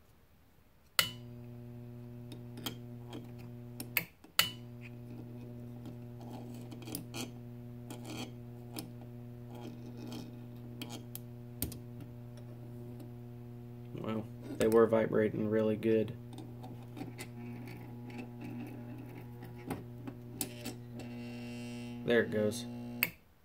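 A transformer hums with a steady, loud buzz.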